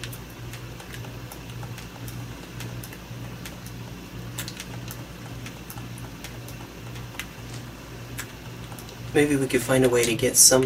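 Small footsteps patter softly and steadily.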